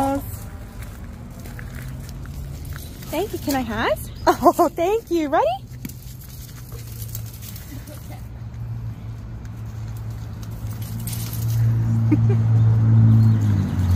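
A leash drags and scrapes across gravel.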